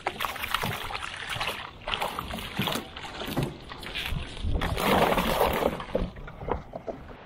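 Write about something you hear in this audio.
A cast net splashes into the water.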